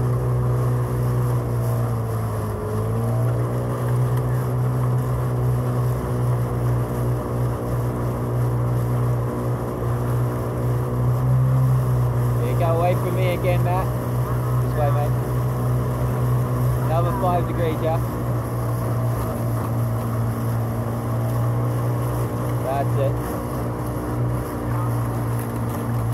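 Oars splash and swish through the water.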